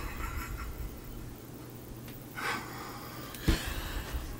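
A woman laughs heartily close by.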